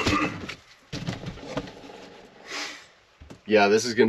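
A cardboard box rustles as it is handled.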